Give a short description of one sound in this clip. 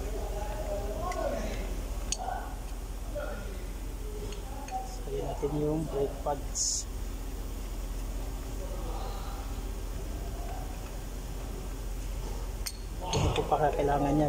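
Metal parts clink and tap as a brake caliper is handled.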